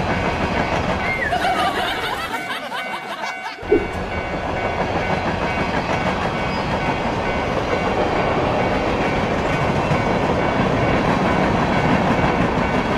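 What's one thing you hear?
Toy train engines rumble and clatter along railway tracks.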